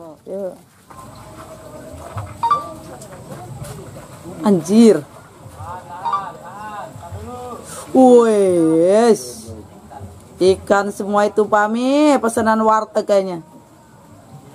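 Men talk loudly outdoors.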